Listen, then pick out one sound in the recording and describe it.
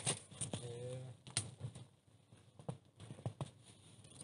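Fabric rustles and flaps as a cover is handled.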